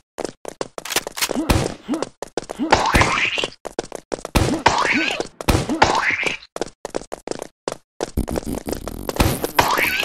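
A toy launcher fires with wet splats.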